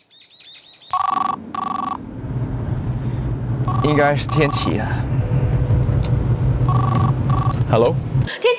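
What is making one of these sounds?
A mobile phone rings.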